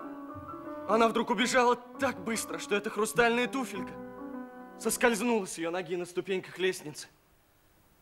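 A young man speaks with feeling, close by.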